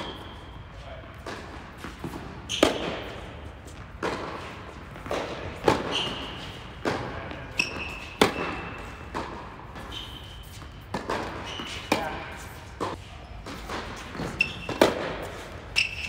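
A tennis ball is struck back and forth with sharp pops that echo in a large hall.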